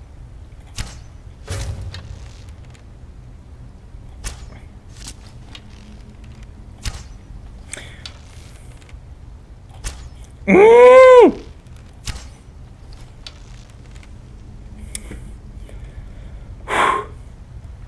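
A bowstring snaps sharply as arrows are loosed, again and again.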